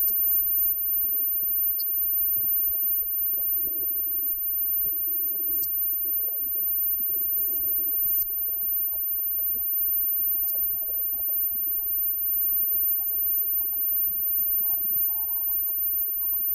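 A live rock band plays loudly.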